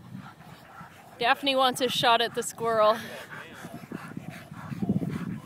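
A dog pants rapidly close by.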